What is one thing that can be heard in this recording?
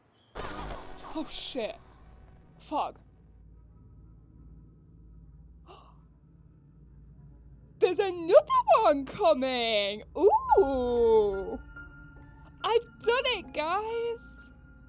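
A young woman speaks excitedly into a microphone, with rising and falling exclamations.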